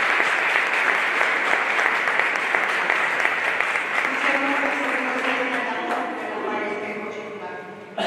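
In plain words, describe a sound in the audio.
A crowd applauds in a large echoing hall, then the applause fades.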